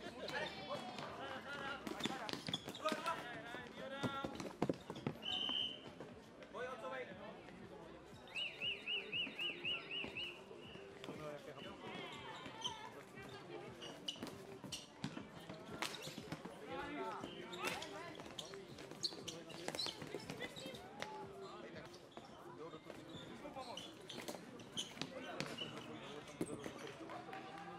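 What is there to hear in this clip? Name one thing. Plastic sticks knock and clack against a ball.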